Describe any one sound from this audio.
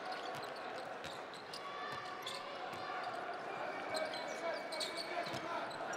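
A basketball is dribbled on a hardwood court.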